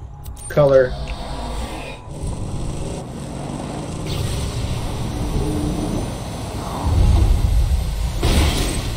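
A game vehicle engine rumbles as it drives.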